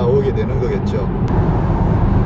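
A middle-aged man talks calmly into a microphone inside a car.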